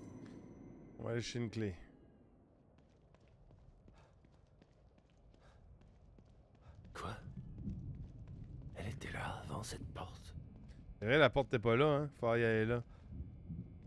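A man talks into a close microphone in short bursts.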